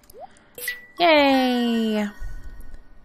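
A short, bright game jingle plays and slides down in pitch.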